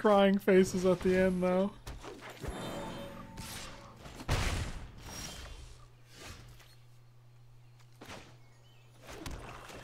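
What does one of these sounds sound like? Card game sound effects whoosh and chime as cards are played.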